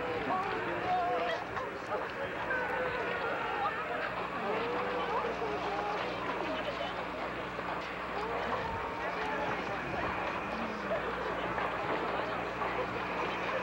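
A crowd of men and women talks and calls out at once outdoors.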